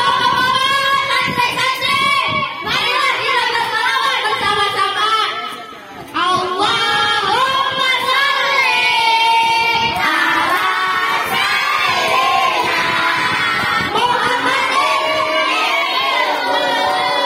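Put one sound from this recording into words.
Two boys sing together into microphones, heard through loudspeakers.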